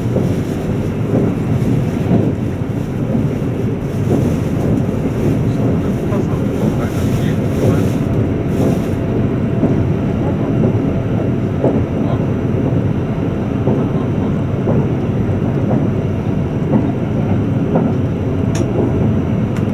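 An electric express train rumbles along the track at speed, heard from inside the carriage.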